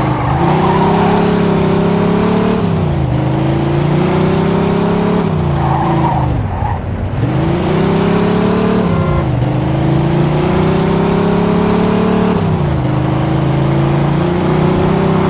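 A car engine roars loudly, revving up and dropping as gears shift.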